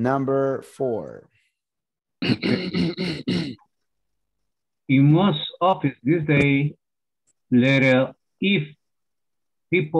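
A young man speaks calmly through a microphone, as in an online call.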